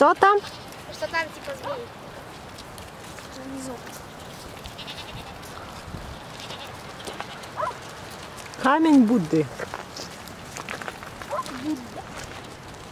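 Goats bleat loudly nearby.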